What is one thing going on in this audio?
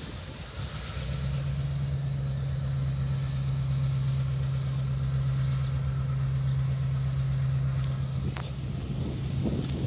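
A locomotive horn blows with a loud, steady tone.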